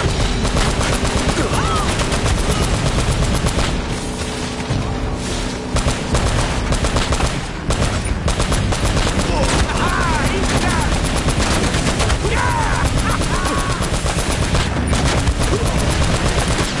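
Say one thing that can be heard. A jeep engine rumbles as it drives over rough ground.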